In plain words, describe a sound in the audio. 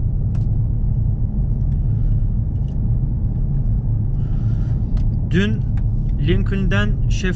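A car engine rumbles steadily from inside the car while driving.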